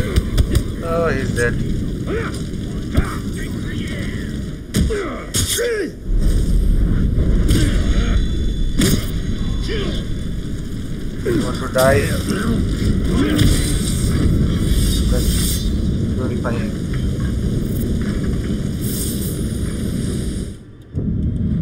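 Swords clash and strike in a fight.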